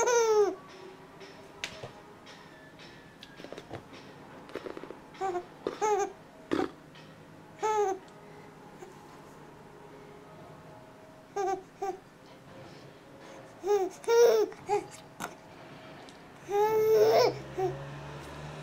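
A baby coos and squeals close by in short bursts.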